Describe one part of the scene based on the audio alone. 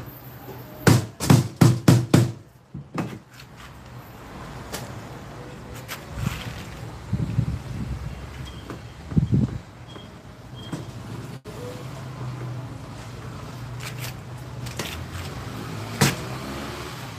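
Metal tubing knocks and clinks as it is handled.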